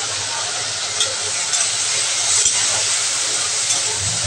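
A metal spatula scrapes a pan.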